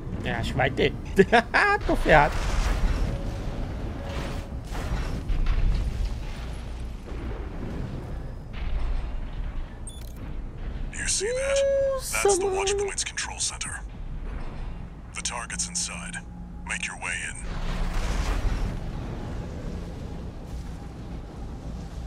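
Explosions boom and crash.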